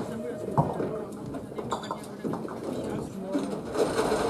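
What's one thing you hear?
Bowling balls roll and rumble down lanes.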